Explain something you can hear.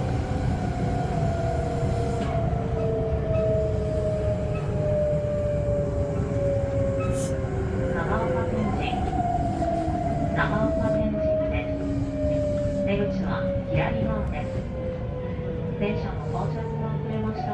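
An electric motor whines and slowly falls in pitch.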